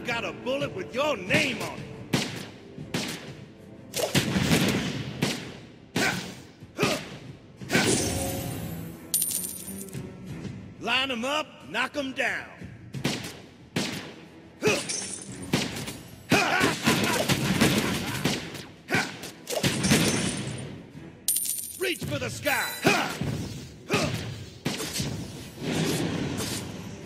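Game sound effects of spells and attacks burst and whoosh repeatedly.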